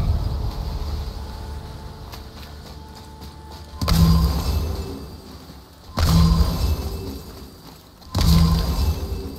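Heavy footsteps crunch on rough stone.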